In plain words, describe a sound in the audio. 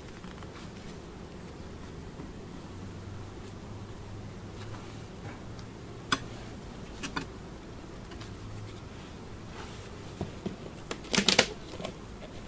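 Bees buzz around the hives.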